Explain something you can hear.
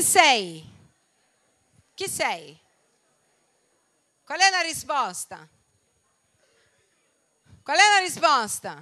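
A woman speaks with animation into a microphone, heard through loudspeakers in a large hall.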